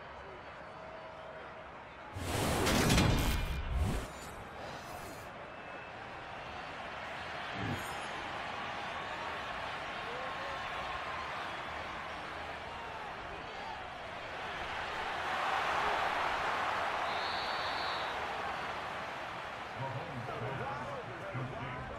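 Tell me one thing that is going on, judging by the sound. A large stadium crowd cheers and roars steadily, swelling louder for a while.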